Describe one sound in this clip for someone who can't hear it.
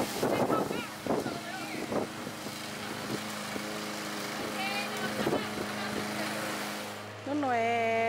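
A lawn mower engine runs with a steady drone nearby.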